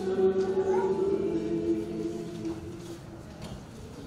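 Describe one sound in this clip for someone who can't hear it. A man chants in a steady, sung voice.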